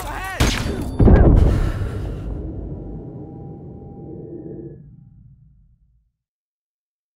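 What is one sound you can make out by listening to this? A heavy thud hits close by and slowly fades.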